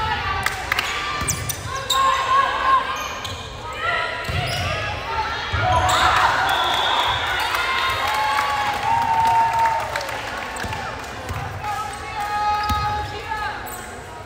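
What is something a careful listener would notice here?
A crowd of spectators cheers and shouts.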